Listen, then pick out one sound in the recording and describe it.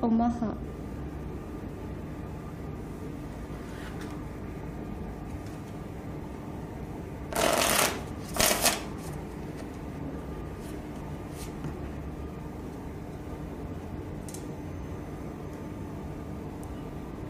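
Playing cards tap and slide softly against each other.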